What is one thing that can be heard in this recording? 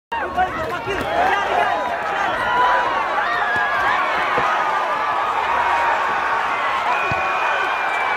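Boxing gloves thud as punches land.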